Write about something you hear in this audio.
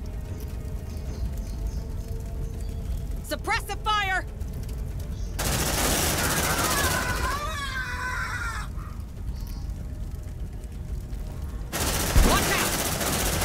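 Fire roars and rumbles from large explosions.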